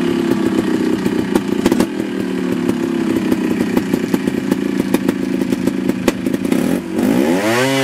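A motorcycle engine putters steadily at idle.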